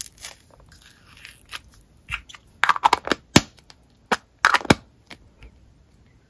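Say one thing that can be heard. A small plastic case clicks and rattles as it is handled.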